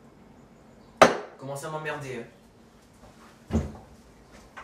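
Dishes clink on a table.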